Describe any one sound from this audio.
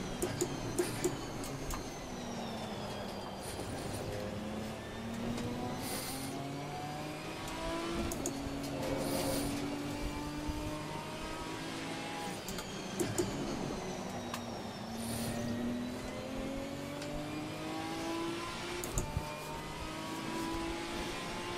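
Rain patters steadily on a car.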